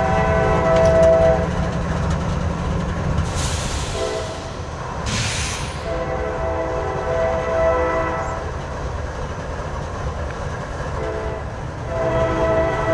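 A diesel locomotive engine rumbles deeply as it approaches.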